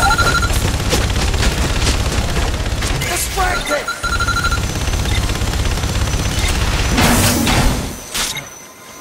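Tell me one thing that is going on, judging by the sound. Gunfire and explosions crash in a game battle.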